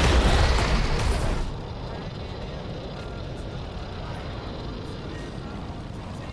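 A heavy robot stomps along with loud metallic footsteps.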